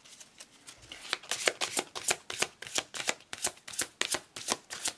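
Playing cards are shuffled by hand with rapid crisp flicks.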